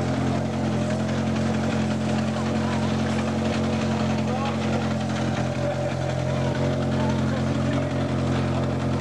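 A rally car engine idles with a steady, loud hum close by.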